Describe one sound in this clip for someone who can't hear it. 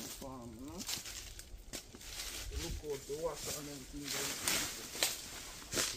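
Dry leaves and twigs crackle under footsteps.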